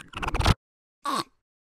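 A small creature squeaks in a high, chirpy voice.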